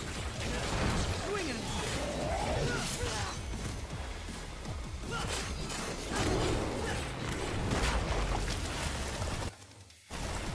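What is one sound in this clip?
A huge monster roars and growls.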